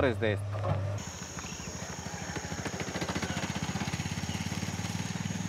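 A motorbike engine runs with a steady putter.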